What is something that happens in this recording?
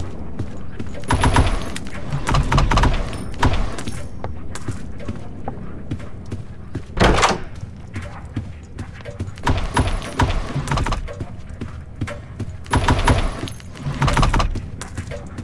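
Wooden drawers slide open with a scrape.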